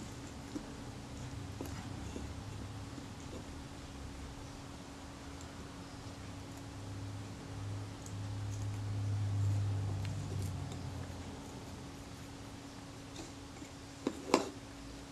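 Small metal tweezers scrape and tick against a hard plastic part.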